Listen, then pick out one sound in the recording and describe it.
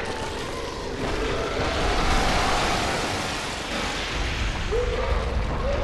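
A monster roars loudly and deeply.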